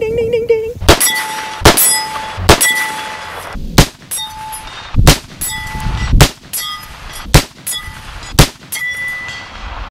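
A steel target rings with a clang after each hit.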